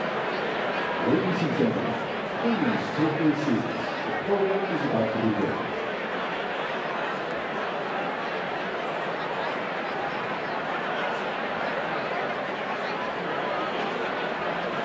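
A large crowd chatters steadily in a big echoing hall.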